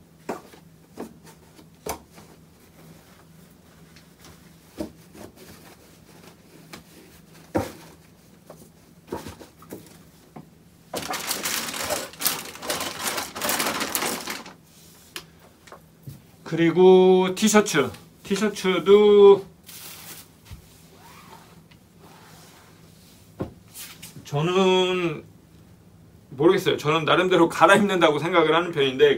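Clothes and items rustle and thump as a suitcase is packed.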